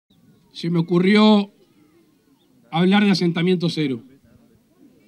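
A man speaks loudly and with animation through a microphone and loudspeakers outdoors.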